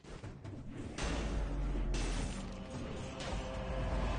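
A blast bursts with a rumble.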